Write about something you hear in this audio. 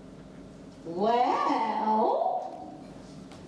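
A young woman sings loudly on stage in an echoing hall.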